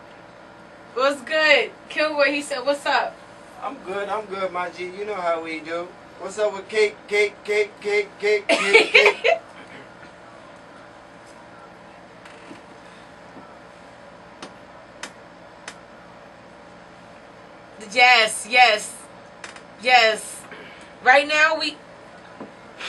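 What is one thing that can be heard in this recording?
A woman laughs and talks loudly close to a microphone.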